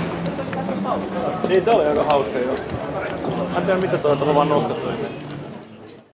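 Footsteps walk along a street outdoors.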